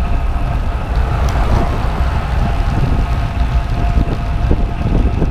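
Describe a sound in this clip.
Wind rushes loudly past, as if heard while riding a bicycle.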